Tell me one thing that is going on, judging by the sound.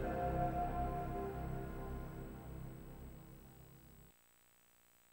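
A game console's startup chime rings out loudly and slowly fades away.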